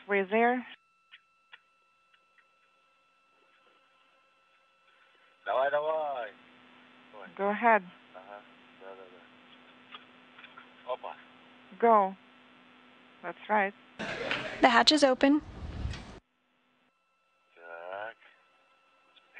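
A man speaks calmly over a crackly radio link.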